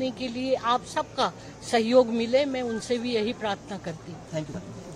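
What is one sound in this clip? An elderly woman speaks with animation into a close microphone.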